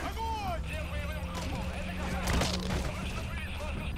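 A heavy blow thuds.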